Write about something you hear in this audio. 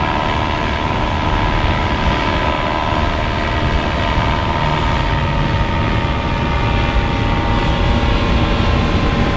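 A paramotor engine drones steadily overhead.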